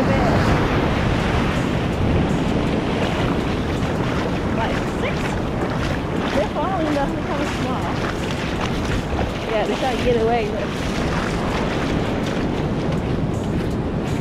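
Water sloshes and splashes close by.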